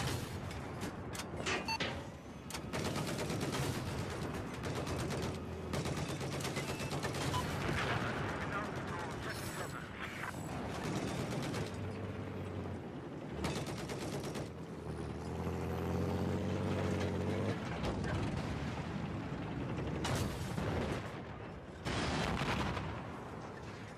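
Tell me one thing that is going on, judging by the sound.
A tank cannon fires with loud booming blasts.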